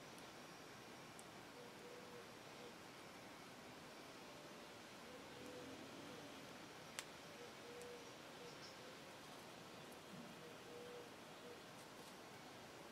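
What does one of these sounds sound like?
A small metal pin clicks and taps against a wooden gun stock.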